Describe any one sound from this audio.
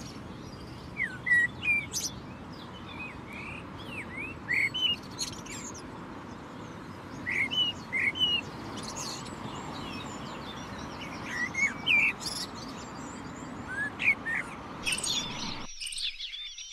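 A blackbird sings clear fluting phrases close by.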